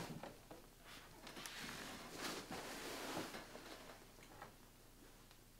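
Sandals scuff and tap softly on a carpet.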